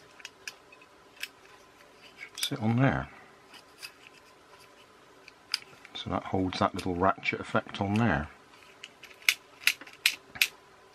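Small plastic parts click and tap close by.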